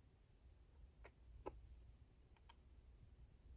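Small plastic toy parts click softly as they are turned in hands.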